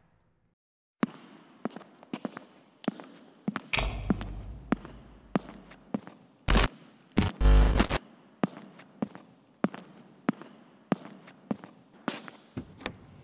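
High heels click steadily on a hard floor in a large echoing hall.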